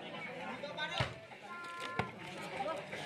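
A volleyball is struck by hand with a sharp slap.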